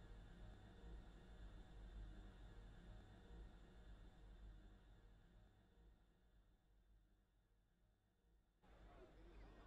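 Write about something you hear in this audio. A huge machine hums low and slowly fades.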